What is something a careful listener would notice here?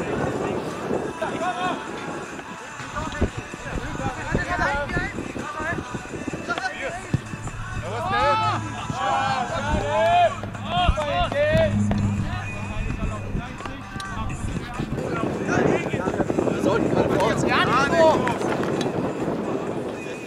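Young male players shout to each other across an open field.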